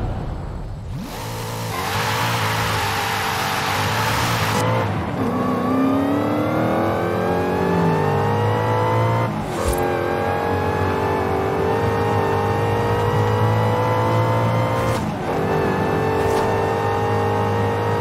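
A sports car engine roars and climbs in pitch through several gear changes.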